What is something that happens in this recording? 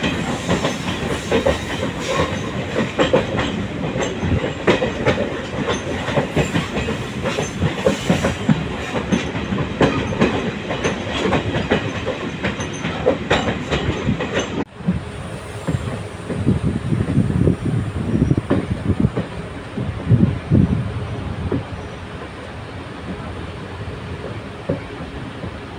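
A passenger train's wheels clatter and rattle on the rails, heard from inside a coach.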